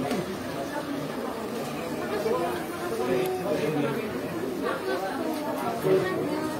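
A crowd of shoppers chatters nearby.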